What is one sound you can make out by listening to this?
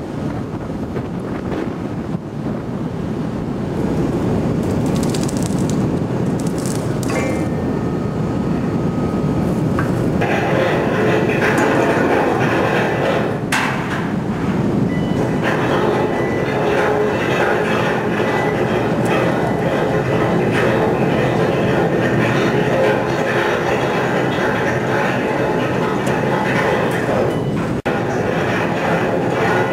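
A crane's hydraulic motor drones steadily.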